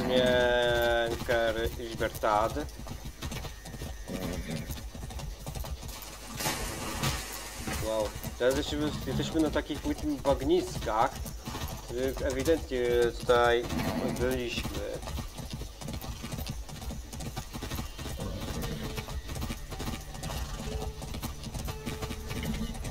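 A horse's hooves thud steadily on a dirt road.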